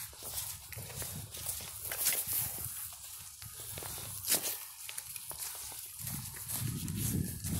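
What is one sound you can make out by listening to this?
Footsteps crunch through dry fallen leaves outdoors.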